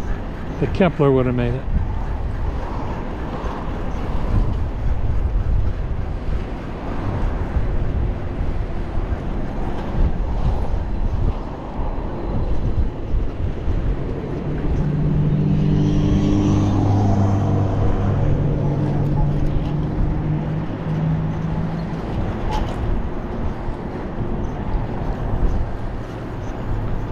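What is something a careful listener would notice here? Bicycle tyres roll and hum on smooth pavement.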